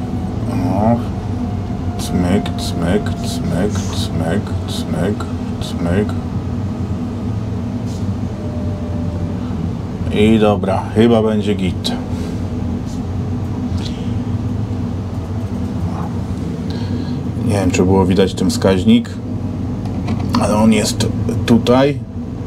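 A vehicle engine hums steadily at low speed.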